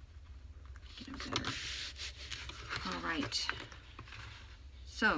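Paper rustles and slides under hands.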